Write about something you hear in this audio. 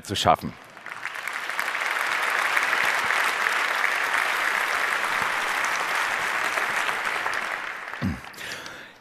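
A large audience applauds and then fades.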